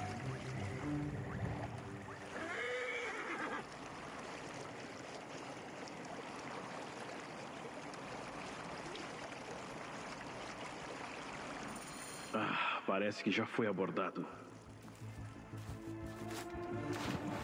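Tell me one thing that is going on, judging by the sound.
Water splashes against a small boat as it moves along.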